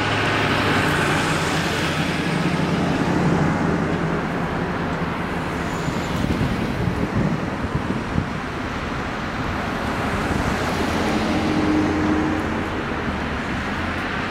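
Cars and a pickup truck roll past one after another, their tyres hissing on the road.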